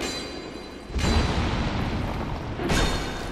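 A magical blast whooshes loudly.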